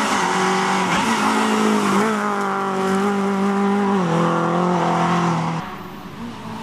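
A rally car engine roars loudly as the car speeds past, shifting gears.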